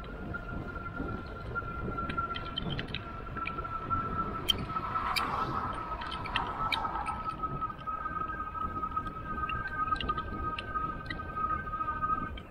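Wind rushes and buffets steadily outdoors.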